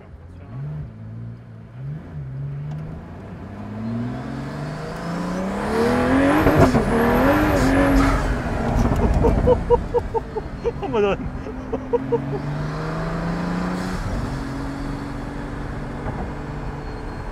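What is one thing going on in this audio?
A sports car engine roars, revving up and climbing in pitch through the gears.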